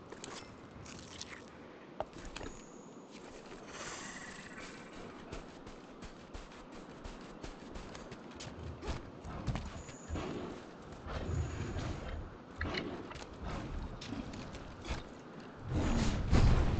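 Heavy footsteps crunch quickly on sand.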